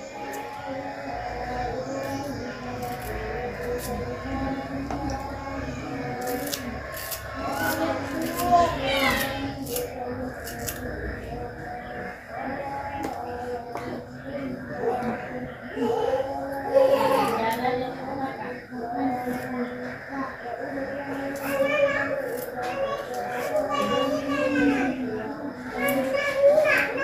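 A knife scrapes and shaves a soft block.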